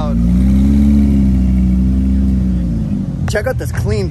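A sports car engine hums loudly as the car rolls past.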